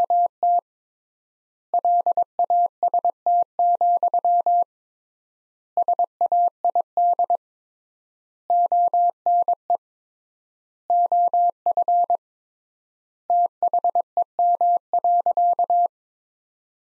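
Morse code plays as short, steady, high beeps in bursts with pauses between them.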